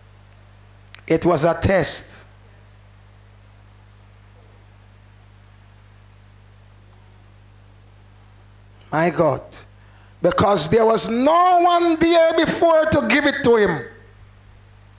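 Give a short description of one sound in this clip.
A man preaches with animation through a microphone, in short bursts with long pauses.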